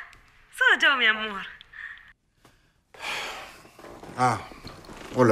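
A middle-aged man talks on a phone in a tense voice, close by.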